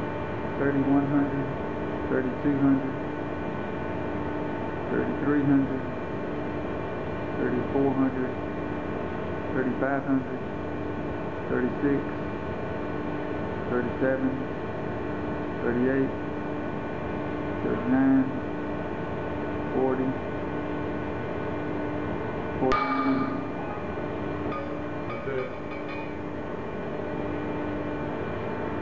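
A hydraulic testing machine hums steadily and pulses every two seconds or so.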